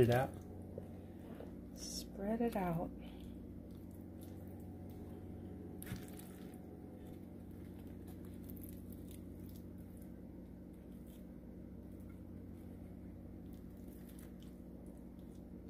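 A spoon scrapes and spreads a soft filling onto toasted bread.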